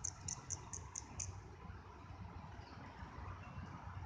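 A squirrel crinkles a scrap of paper.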